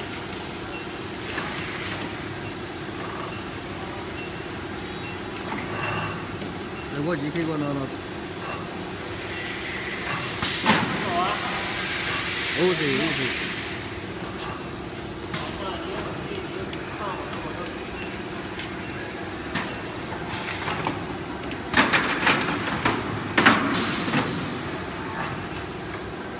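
A machine hums and whirs steadily with its rollers turning.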